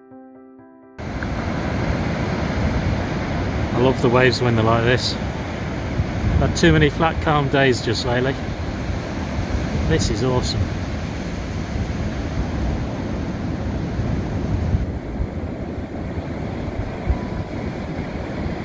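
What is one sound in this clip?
Heavy waves crash and roar onto a beach, outdoors in wind.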